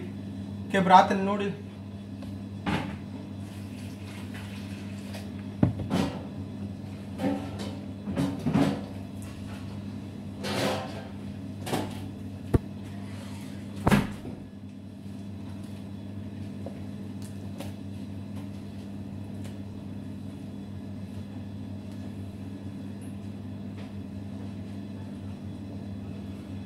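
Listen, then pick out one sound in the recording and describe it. Hands knead and squish wet dough on a metal counter.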